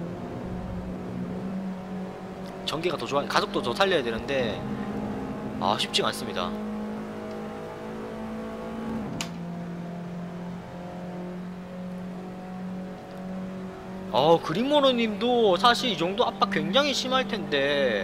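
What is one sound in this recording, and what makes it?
A car engine drones steadily at high revs.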